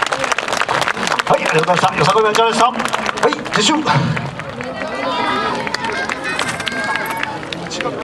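A group of young dancers shout and chant together in rhythm.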